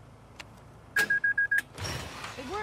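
A keypad gives a string of loud, quick beeps.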